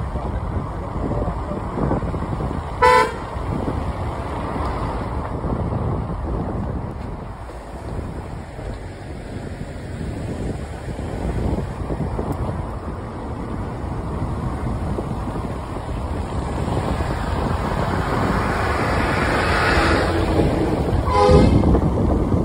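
A vehicle drives along a road with a steady rumble of engine and tyres.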